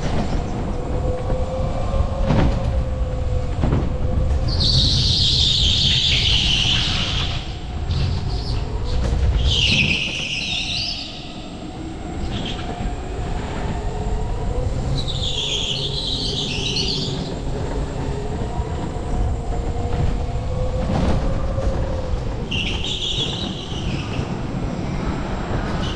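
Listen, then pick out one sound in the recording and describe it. A go-kart engine hums steadily, rising and falling with speed.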